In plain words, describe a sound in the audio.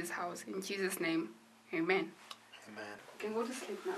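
A young woman speaks softly and earnestly, close by.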